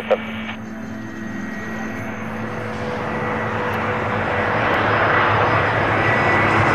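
A jet airliner approaches with a rising roar of engines.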